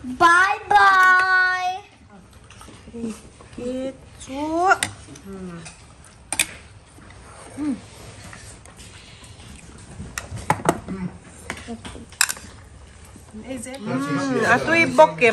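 A young child talks and squeals close by.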